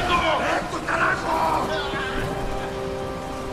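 A man grunts and groans as he struggles close by.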